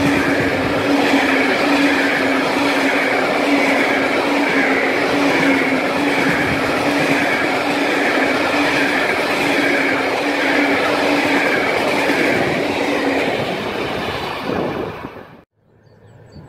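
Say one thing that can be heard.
A long freight train rumbles and clatters past close by.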